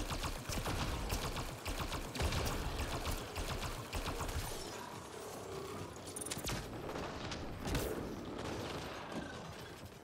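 A loud energy blast crackles and fizzes.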